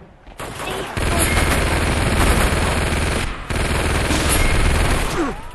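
A heavy machine gun fires in a rapid, roaring stream.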